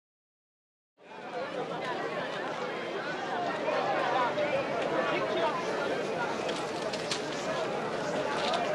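A crowd of men and women murmurs and chatters nearby.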